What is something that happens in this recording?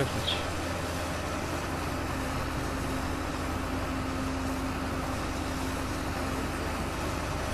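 A tractor engine rumbles steadily while driving.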